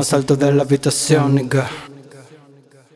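A young man raps loudly and with energy.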